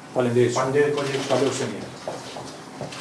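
A middle-aged man speaks formally into a microphone.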